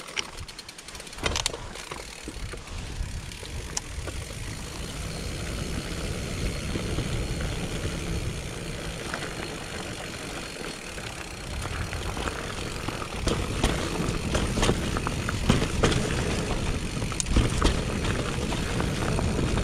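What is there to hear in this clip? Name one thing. A mountain bike rolls and rattles over a bumpy dirt trail.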